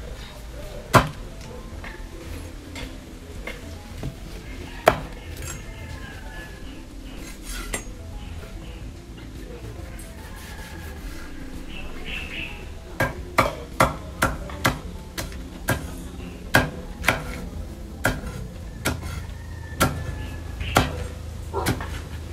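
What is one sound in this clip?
A knife chops against a wooden board in quick, sharp knocks.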